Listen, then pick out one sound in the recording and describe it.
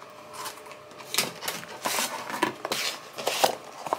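A plastic packet crinkles.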